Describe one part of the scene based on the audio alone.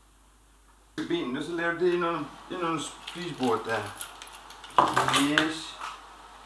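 A man speaks nearby with animation.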